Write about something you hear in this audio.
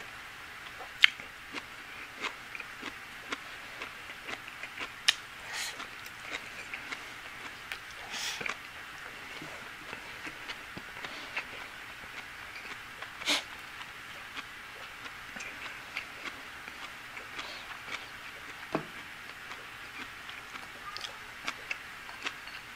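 Chopsticks click against a ceramic bowl.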